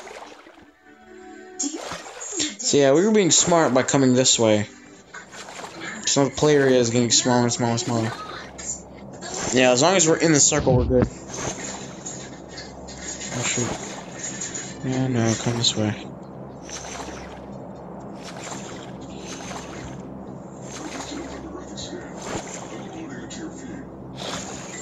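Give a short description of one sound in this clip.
Water splashes with steady swimming strokes.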